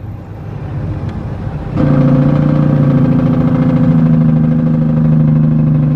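A heavy truck rumbles past close by.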